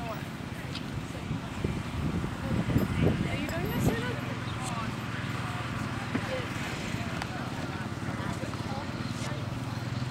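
A horse's hooves thud on grass as it canters past.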